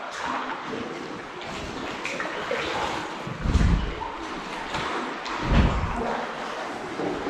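Water laps against a kayak's hull.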